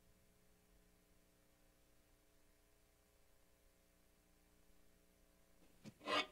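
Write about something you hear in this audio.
Footsteps tread softly across a wooden stage.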